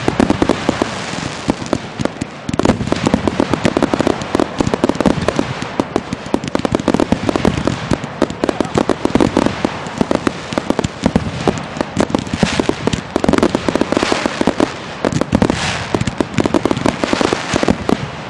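Fireworks bang and crackle rapidly, close by.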